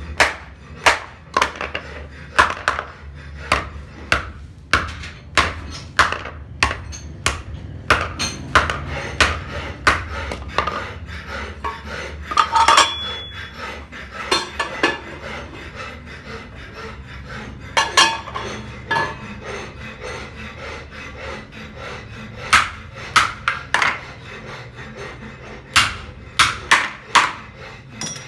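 A hammer strikes metal in sharp, ringing blows.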